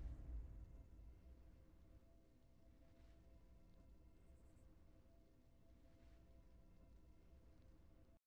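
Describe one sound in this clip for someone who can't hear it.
Quiet game victory music plays.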